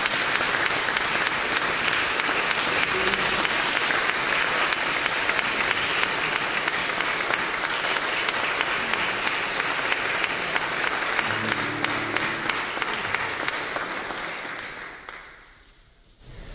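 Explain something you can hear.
An audience applauds in an echoing hall, then the clapping fades away.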